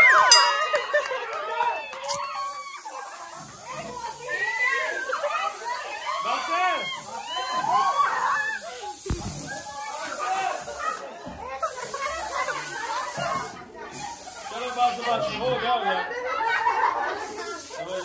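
Children and women shout and laugh loudly.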